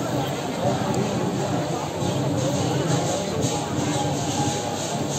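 A large outdoor crowd chatters and murmurs nearby.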